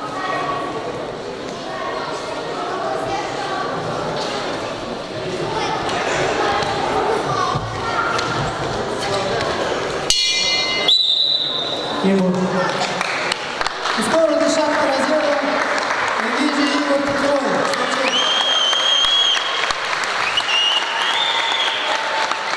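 A crowd of spectators chatters and murmurs in an echoing indoor hall.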